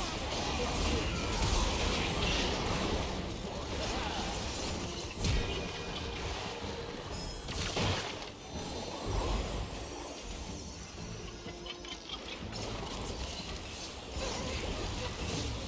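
Game characters clash with sharp hits and impacts.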